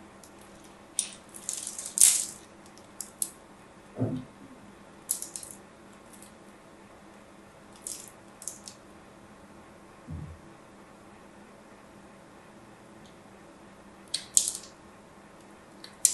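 A small blade scrapes and crunches into a soft block of soap, in short bursts.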